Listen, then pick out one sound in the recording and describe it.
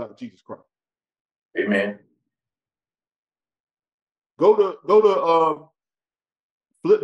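A man speaks with emphasis, close to a microphone.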